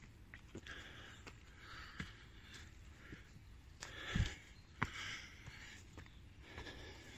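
Footsteps crunch on a dirt path.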